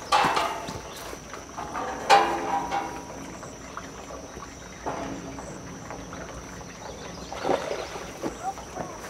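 A man talks close by, calmly.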